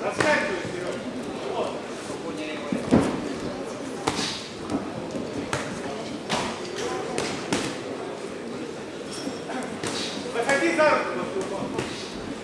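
Boxing gloves thud sharply against bodies and heads.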